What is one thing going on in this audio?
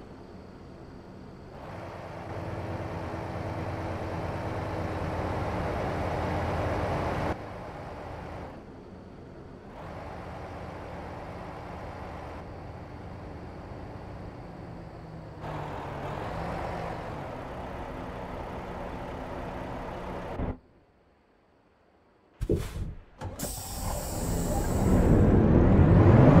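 A truck's diesel engine rumbles and idles steadily.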